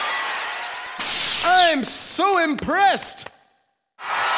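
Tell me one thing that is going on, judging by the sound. Electronic whooshing and bouncing tones sound.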